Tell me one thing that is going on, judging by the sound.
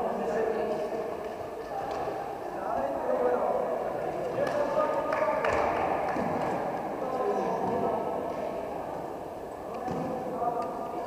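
Young players chatter and call out in a large echoing hall.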